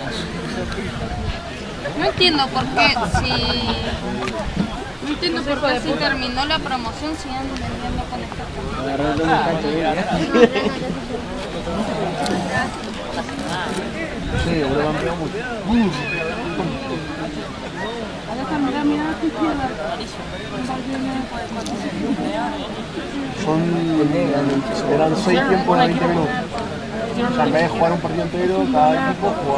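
Spectators, men and women, chat and call out nearby, outdoors.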